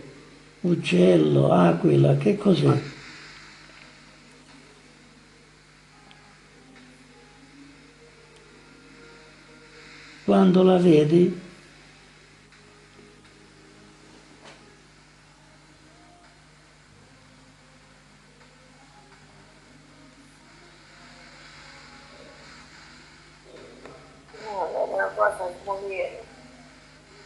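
An elderly man speaks in short bursts through a phone loudspeaker.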